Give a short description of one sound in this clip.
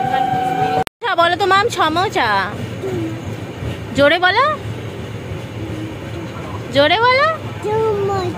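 A young girl speaks in a high, playful voice close by.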